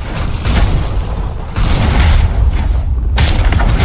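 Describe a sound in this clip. Heavy blows thud and crash during a fight.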